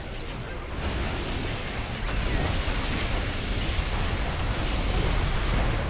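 Spell effects crackle and boom in a busy fantasy battle.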